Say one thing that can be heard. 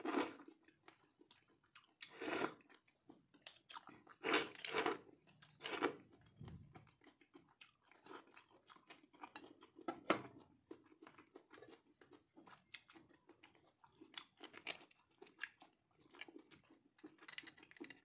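A metal spoon scrapes against bone.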